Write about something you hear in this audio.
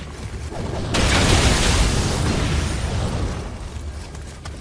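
A loud explosion bursts and roars, then slowly fades.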